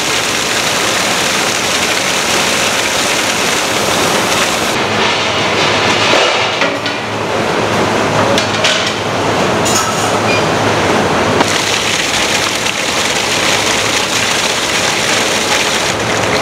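Water splashes onto a tray of rice.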